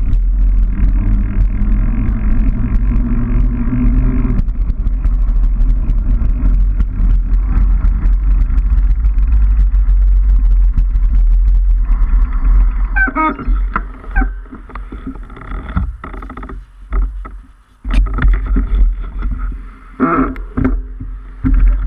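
Bicycle tyres roll on a rough pavement.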